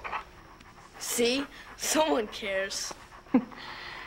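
A young boy speaks softly up close.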